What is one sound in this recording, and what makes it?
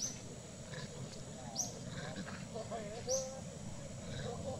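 A monkey squeals and chatters nearby.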